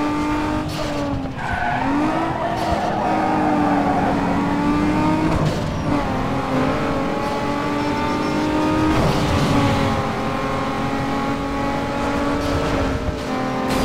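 A racing car engine roars at high revs, shifting gears as it speeds up.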